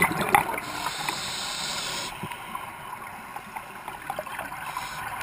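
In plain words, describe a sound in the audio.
Bubbles gurgle and crackle underwater.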